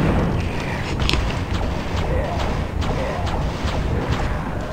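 A magic weapon fires with sharp zaps.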